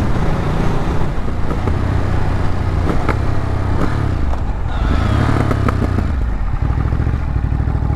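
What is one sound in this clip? A motorcycle engine rumbles steadily close by, its pitch rising and falling with the throttle.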